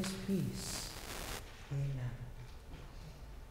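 A man speaks quietly in an echoing hall.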